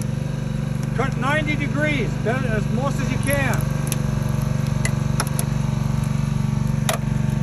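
A hydraulic rescue tool's power unit hums steadily.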